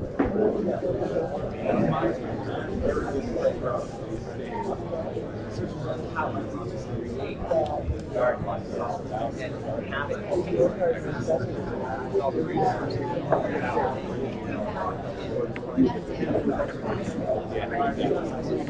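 A murmur of many people talking fills a room.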